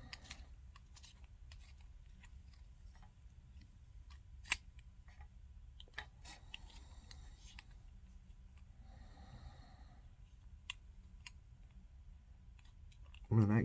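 Small clicks and taps sound close by.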